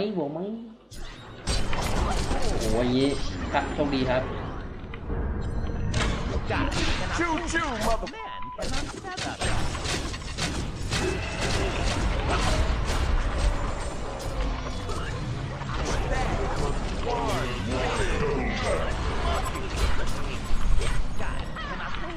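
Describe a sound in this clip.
Game battle effects clash, zap and crackle loudly.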